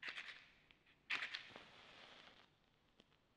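A match strikes and flares.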